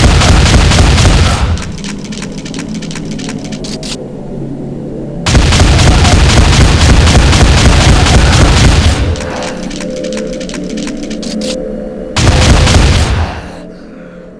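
A shotgun fires again and again with loud booming blasts.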